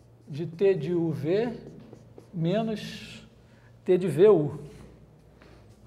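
A man speaks, heard from a few steps away.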